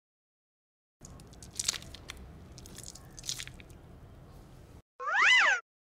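A mesh squishy ball is squeezed in a hand, squelching softly.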